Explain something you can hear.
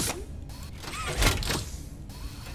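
A metal lever clanks as it is pulled.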